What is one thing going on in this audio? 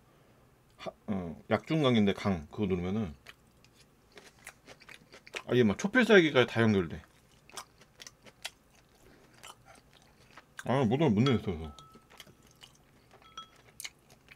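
Chopsticks and a spoon clink softly against bowls.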